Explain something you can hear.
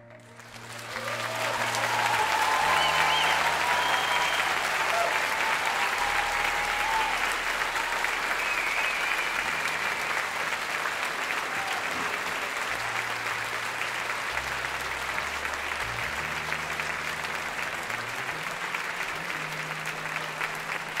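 A large audience applauds loudly in a big echoing hall.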